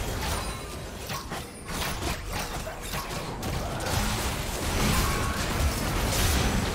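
Game spell effects whoosh and crackle in quick bursts.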